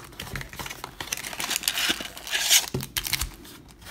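Foil card packs crinkle in hands.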